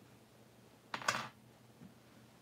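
Metal tweezers clatter down onto a hard tabletop.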